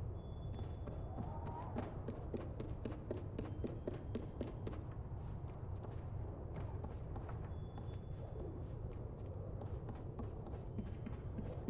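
Small footsteps patter lightly across wooden floorboards.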